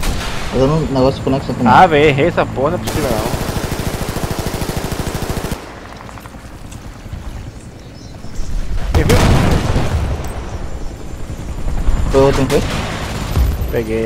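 A helicopter's rotor thumps overhead.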